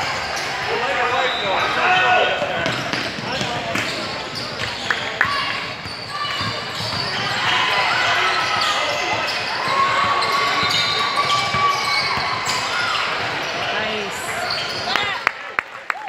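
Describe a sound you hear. Sneakers squeak sharply on a wooden floor in a large echoing hall.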